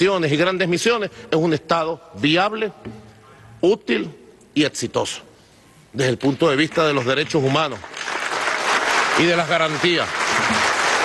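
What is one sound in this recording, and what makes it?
A man speaks forcefully into a microphone in a large echoing hall.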